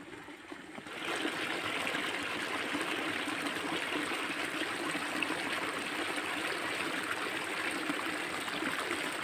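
Water gushes and splashes steadily into a pool close by.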